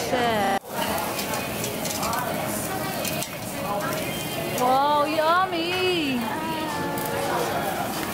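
Meat sizzles on a hot grill.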